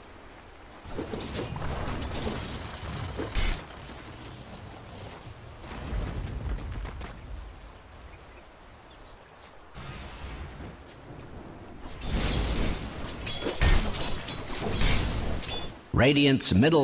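Fighting sound effects clash and crack in a video game.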